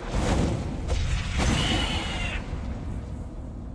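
A fiery burst sound effect whooshes.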